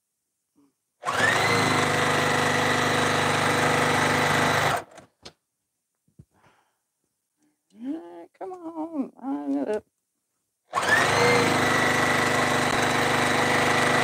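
A high-speed straight-stitch sewing machine runs, stitching fabric.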